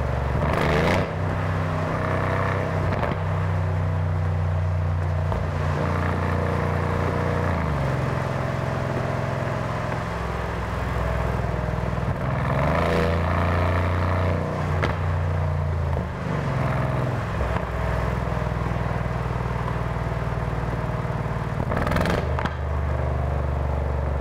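A V8 car engine cruises through a tunnel, heard from inside the car.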